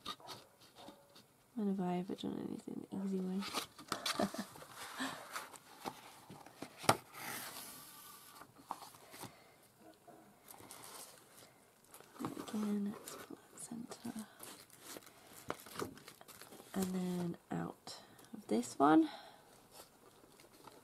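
Stiff paper rustles and scrapes as it is folded and slid into place.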